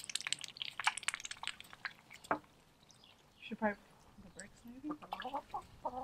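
A duck dabbles and splashes in water.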